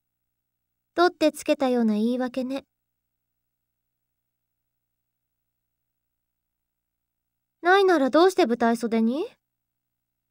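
A young woman speaks playfully, close to the microphone.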